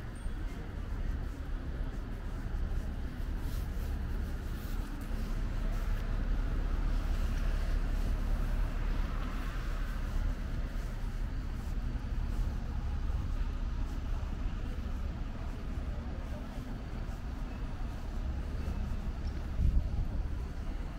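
Bus engines idle nearby with a low, steady rumble.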